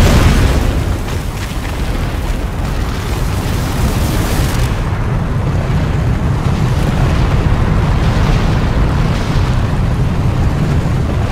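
A heavy stone ball rumbles as it rolls across the ground.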